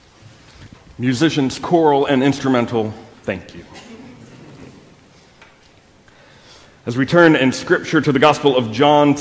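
A man speaks clearly and loudly into a microphone.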